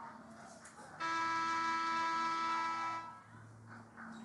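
A loud scoreboard horn blares steadily for about two seconds.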